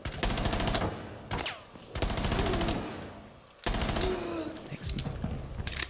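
Rapid gunfire rings out in loud bursts.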